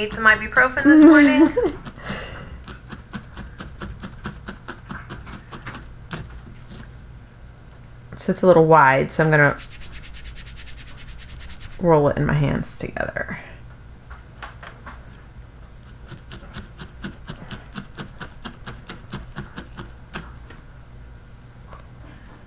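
A felting needle jabs into wool over burlap with quick soft ticks.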